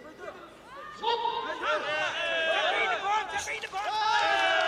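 A large crowd shouts and cheers loudly as the fighters clash.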